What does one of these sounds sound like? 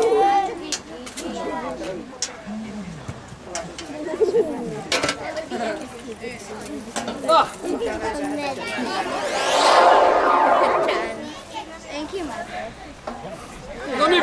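Men and women talk nearby outdoors.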